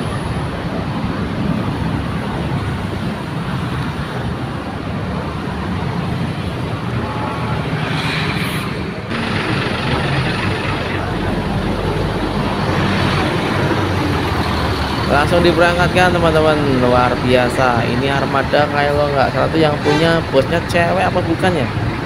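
A large bus engine rumbles steadily nearby.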